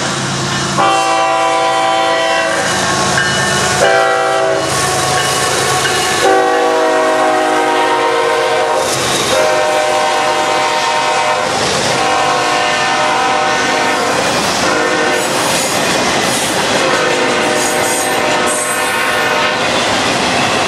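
A train horn blasts loudly in long repeated calls.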